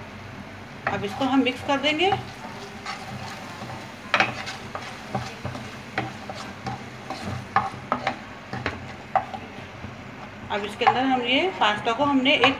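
A spatula scrapes and knocks against a frying pan.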